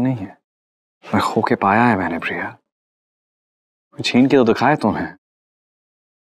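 A man speaks in a pained, emotional voice close by.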